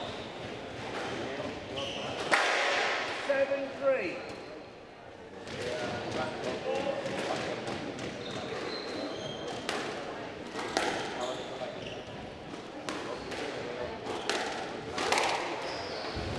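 A squash ball smacks sharply off racquets and walls in an echoing court.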